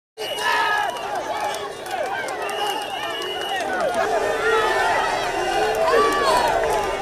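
A large crowd of mostly young men cheers and shouts outdoors.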